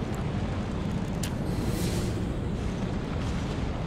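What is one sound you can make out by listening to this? A heavy weapon whooshes through the air in a swing.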